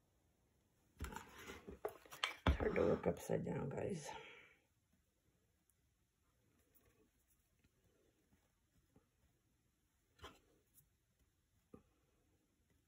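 A small wooden frame knocks and scrapes on a table top.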